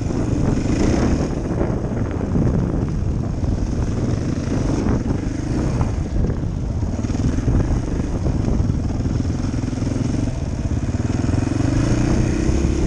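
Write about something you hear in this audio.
A dirt bike engine runs as the bike rides along a dirt trail, heard from inside a helmet.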